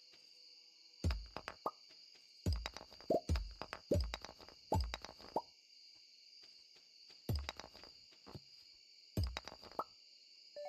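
An axe chops at wood with sharp thuds.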